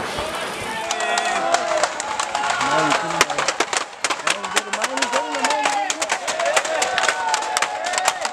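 Burning torches crackle and pop sharply.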